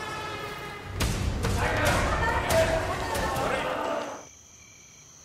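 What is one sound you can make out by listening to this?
A crowd of young people shouts and screams while running.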